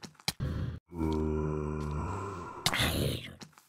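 A monster groans with a low, rasping voice.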